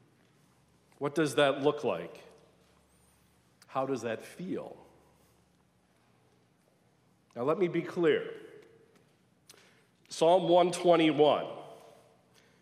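A middle-aged man speaks calmly into a microphone in short phrases, echoing in a large room.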